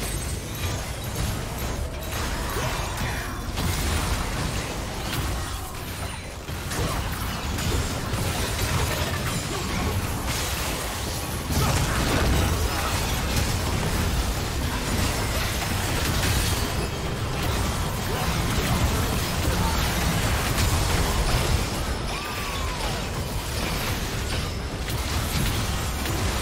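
Magic blasts and explosions crackle and boom in a hectic fight.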